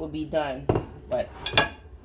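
A metal spoon scrapes on a plate.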